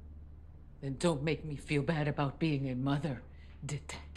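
A middle-aged woman speaks quietly close by.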